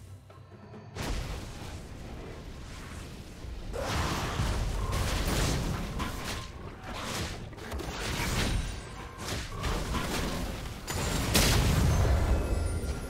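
Video game spell effects whoosh and crackle in bursts.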